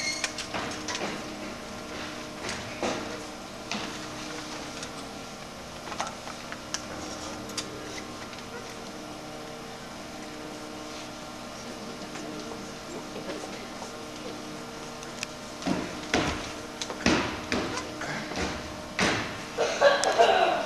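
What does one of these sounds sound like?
An audience murmurs and shifts in a large echoing hall.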